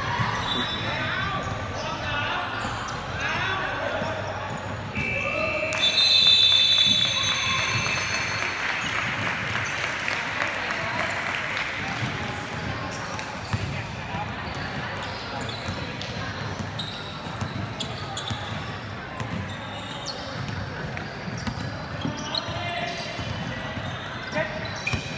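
Sneakers squeak on a hardwood floor in a large echoing hall.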